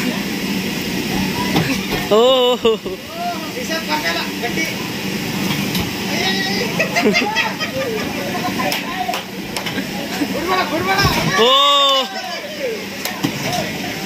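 A mechanical bull's motor whirs as it bucks.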